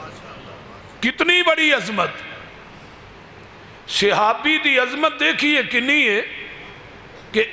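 A man speaks loudly and with feeling into a microphone, in a reverberant space, his phrases ringing out between pauses.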